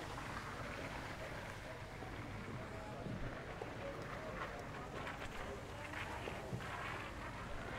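A drag mat scrapes and swishes across a clay court.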